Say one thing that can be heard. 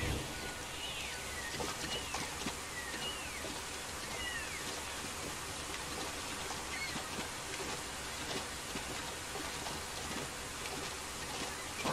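Water splashes as feet wade through a shallow stream.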